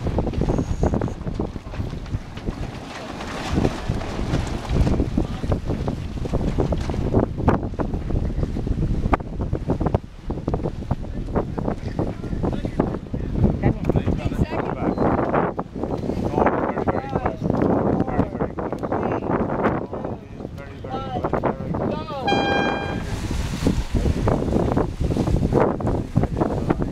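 Strong wind buffets the microphone outdoors on open water.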